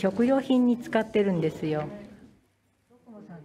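An elderly woman speaks calmly and close by.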